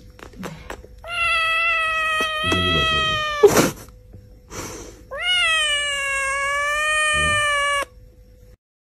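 A cat meows loudly and drawn out, close by.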